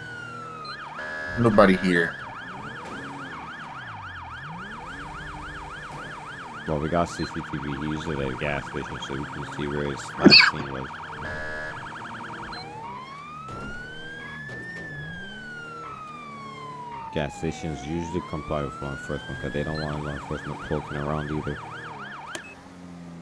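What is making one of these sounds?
A police siren yelps rapidly.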